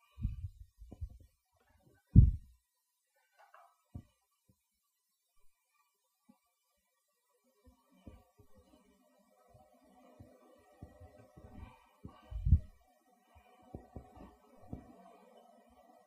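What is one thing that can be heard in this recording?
Hands thump and pat soft dough on a stone counter.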